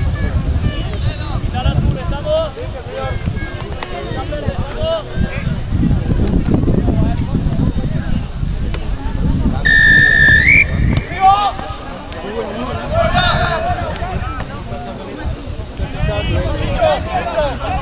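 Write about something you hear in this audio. A crowd of men and women chatters and calls out from the sideline.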